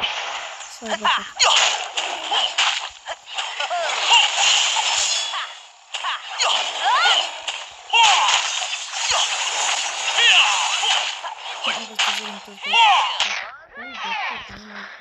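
Blades swish and clang in a fast fight.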